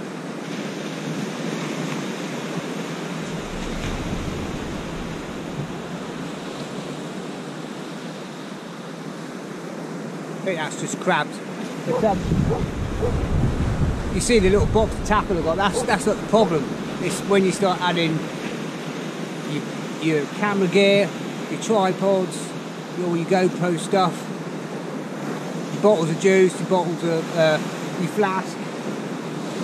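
Surf breaks on a beach.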